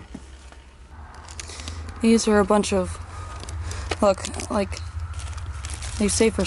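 Plastic rubbish rustles as it is handled.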